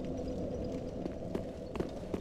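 A fire crackles close by.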